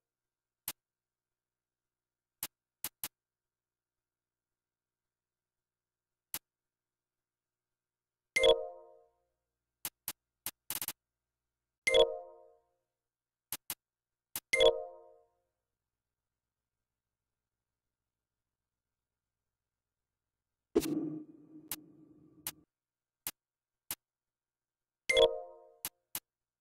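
Short menu clicks tick as selections move.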